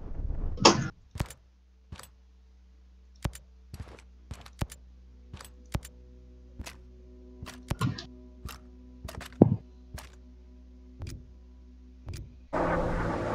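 Sharp interface clicks tick one after another at an uneven pace.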